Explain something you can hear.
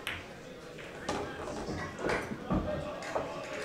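Pool balls clack together and roll across the table.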